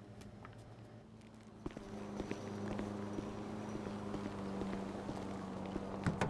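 Footsteps tap on paving.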